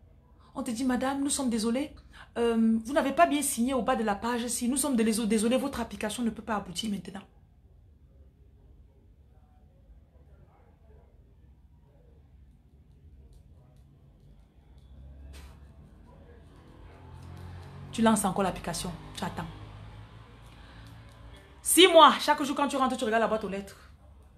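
A woman speaks with feeling, close to the microphone.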